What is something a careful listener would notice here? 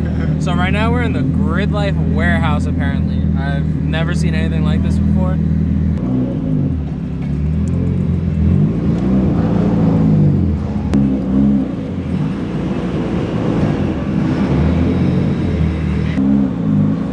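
A car engine idles with a low rumble, then revs up and down as the car moves off.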